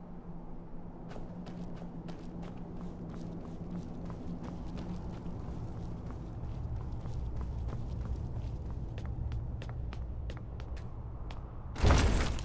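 Footsteps tread on stone floor in an echoing hall.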